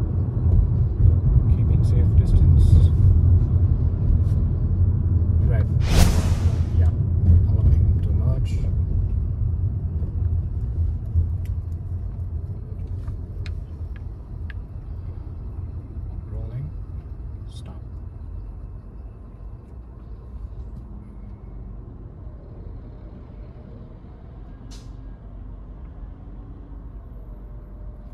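A car engine and tyres rumble low and steadily from inside the car, louder at first and then quieter.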